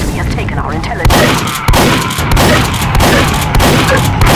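A shotgun fires in quick bursts.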